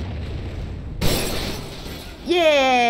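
A bright burst crackles with sparks.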